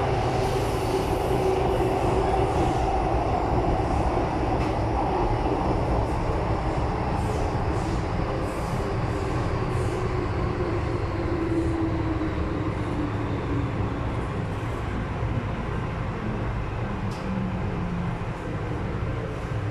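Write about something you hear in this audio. A train rumbles loudly along the tracks with a whining motor.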